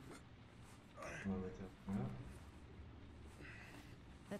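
A man groans in pain.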